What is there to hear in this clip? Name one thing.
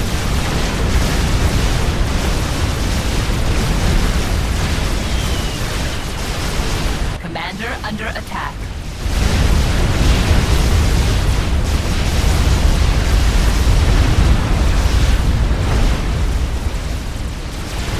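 Explosions boom and rumble in a dense battle.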